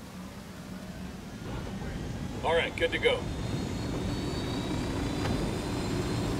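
A helicopter engine starts up and its rotor hum steadily grows louder.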